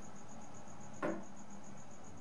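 A plastic turntable lid closes with a soft thud.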